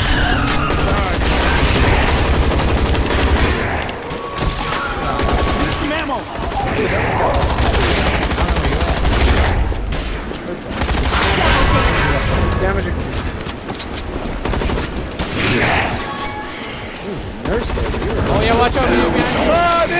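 Gunfire rattles in bursts.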